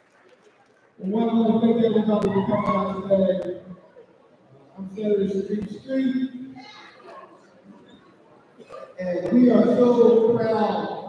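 A man speaks calmly through a microphone and loudspeaker in a large echoing hall.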